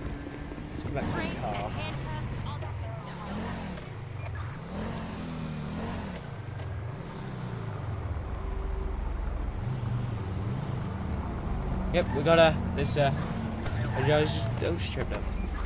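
A car engine hums while driving.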